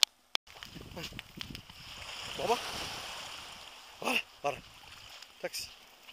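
Small waves lap gently at a shore.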